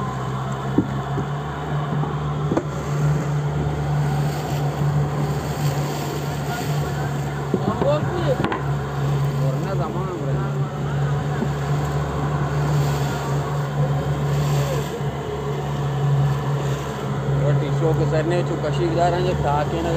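Water rushes and splashes against the hull.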